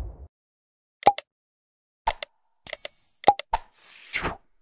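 A mouse button clicks several times.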